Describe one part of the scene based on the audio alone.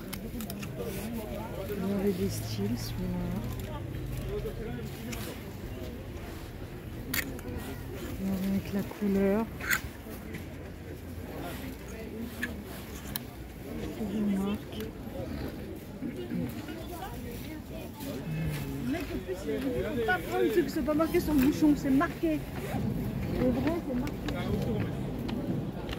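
Clothes rustle as a hand pushes through them.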